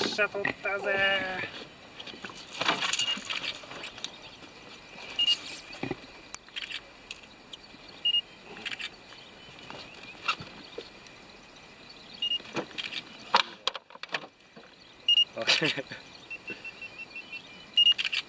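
A young man talks calmly close by.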